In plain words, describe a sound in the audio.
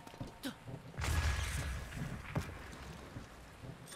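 An electric blast crackles and booms.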